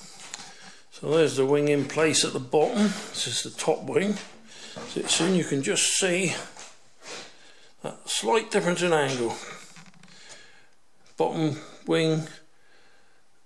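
An elderly man talks calmly close to the microphone.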